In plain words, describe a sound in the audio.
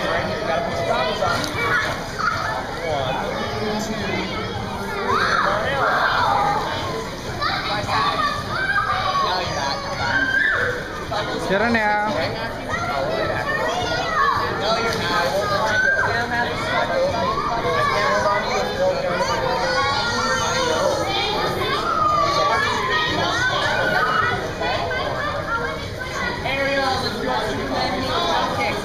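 A man talks calmly to children nearby in an echoing indoor pool.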